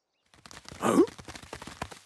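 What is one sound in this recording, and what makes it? A cartoon dog gives a short, cheerful woof.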